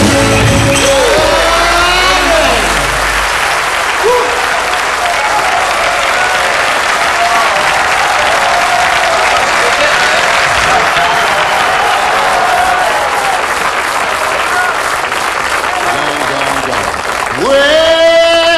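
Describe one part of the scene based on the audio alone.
A band of acoustic guitars and drums plays live.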